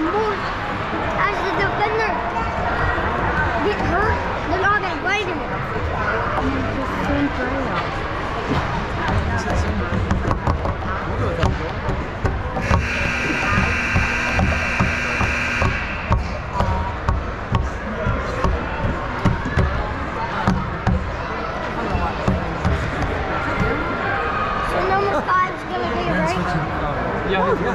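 Young players shout and call out across an echoing rink.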